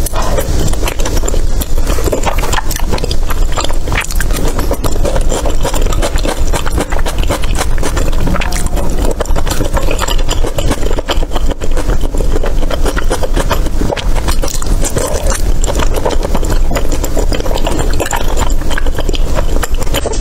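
Chopsticks tap against a bowl.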